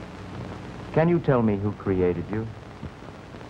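A man speaks softly and closely.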